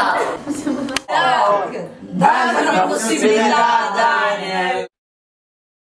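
A group of young people shout and laugh together.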